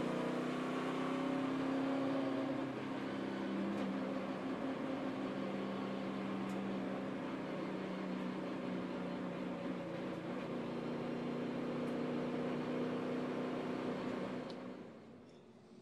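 A race car engine roars loudly at high speed, heard from inside the car.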